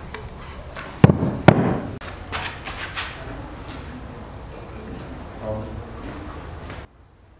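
A heavy wooden frame scrapes and knocks on a floor.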